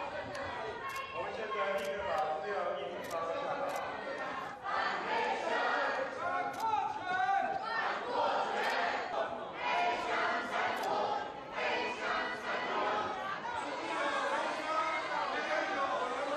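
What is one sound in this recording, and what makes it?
A crowd of men and women shouts and chants loudly in a large echoing hall.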